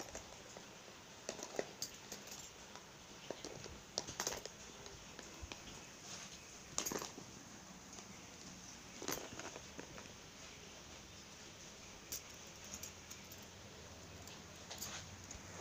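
Metal keys jingle and clink.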